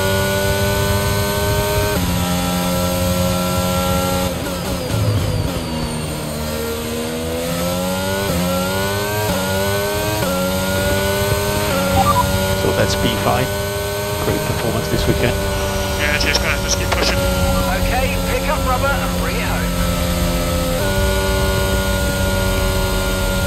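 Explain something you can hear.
A racing car engine roars at high revs, dropping in pitch as it slows and climbing again through the gears.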